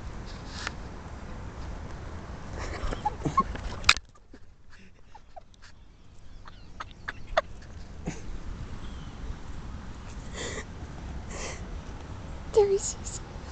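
A small chipmunk scrabbles over cloth close by.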